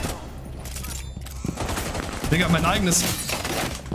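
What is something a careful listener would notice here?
Rapid gunfire bursts out close by.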